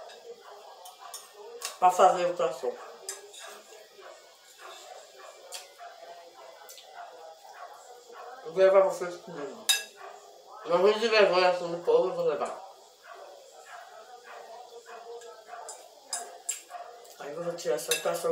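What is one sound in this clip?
A fork scrapes and clinks on a plate.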